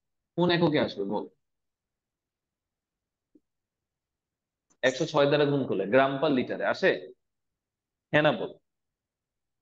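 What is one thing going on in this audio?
A young man explains calmly, speaking close to a microphone, in short bursts with pauses.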